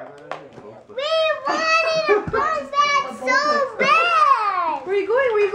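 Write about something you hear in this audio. A young girl shouts with delight.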